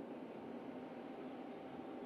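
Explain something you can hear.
A tractor engine hums at a distance.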